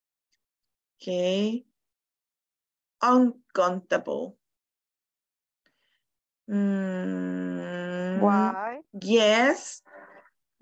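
A woman speaks with animation through an online call.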